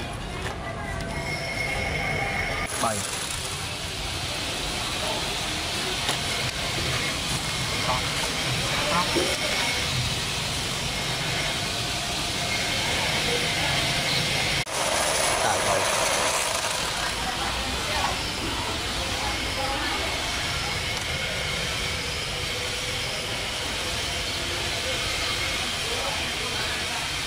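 A small electric motor whirs.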